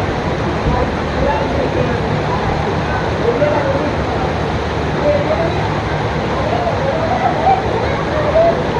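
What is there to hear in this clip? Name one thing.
Water splashes and pours steadily from a play structure.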